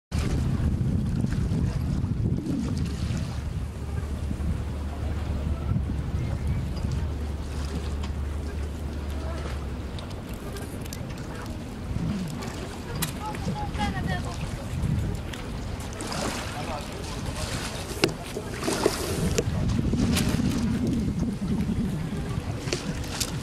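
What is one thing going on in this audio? Wind blows hard outdoors by open water.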